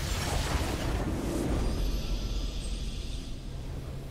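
A triumphant fanfare swells at the end of the game.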